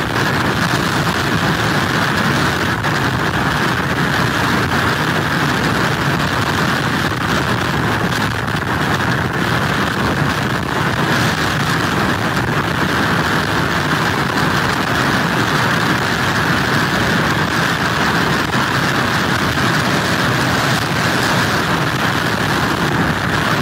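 Strong wind blows steadily outdoors.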